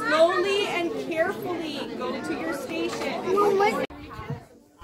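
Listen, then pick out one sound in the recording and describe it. A young woman speaks with animation to a group of children nearby.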